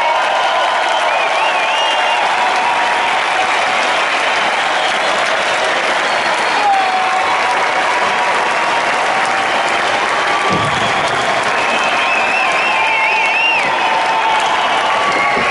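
Fans whistle shrilly over the cheering.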